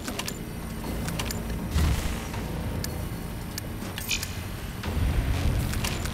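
Short menu clicks sound as items are picked.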